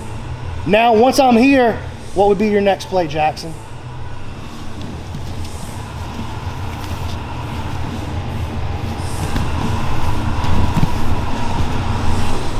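Bodies shuffle and rub on a padded mat.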